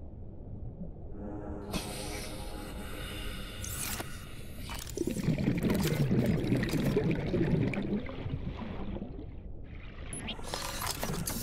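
Water bubbles and rushes steadily underwater.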